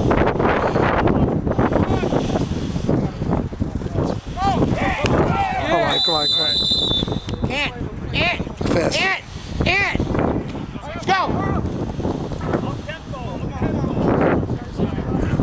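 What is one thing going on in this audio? Young men shout across an open field outdoors.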